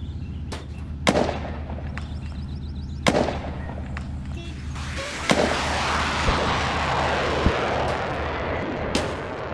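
Sparkling magical whooshes burst and shimmer.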